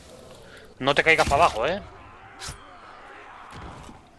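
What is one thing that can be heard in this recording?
A blade stabs into flesh with a sharp thud.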